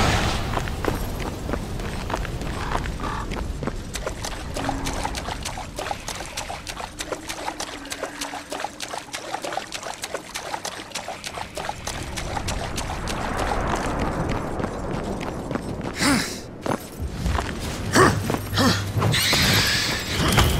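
Heavy footsteps thud on ground.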